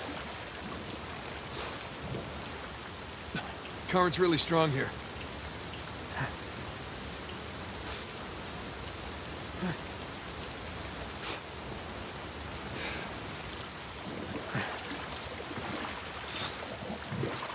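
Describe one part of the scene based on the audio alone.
Water laps and churns steadily all around.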